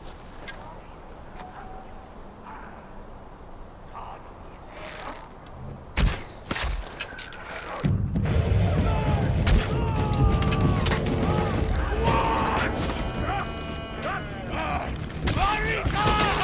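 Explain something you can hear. A wooden bow creaks as its string is drawn.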